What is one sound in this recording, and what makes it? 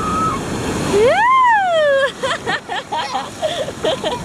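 A young girl screams and shrieks with excitement close by.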